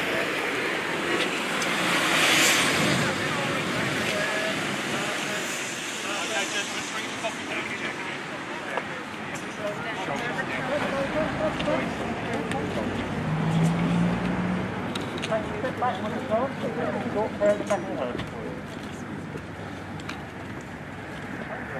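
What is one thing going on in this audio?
Footsteps shuffle on a pavement outdoors.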